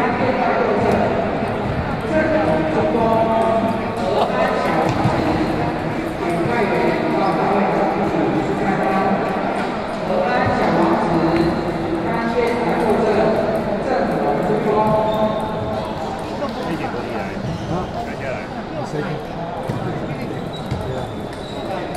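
Table tennis balls click against paddles and the table in a large echoing hall.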